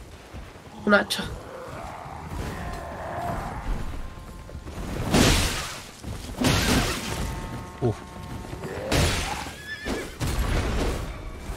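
A sword swings and strikes with sharp hits.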